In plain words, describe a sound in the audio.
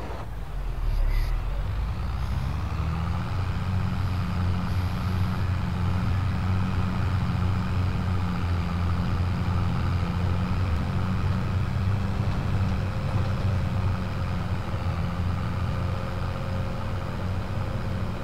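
A tractor engine hums, muffled as if heard from inside a cab.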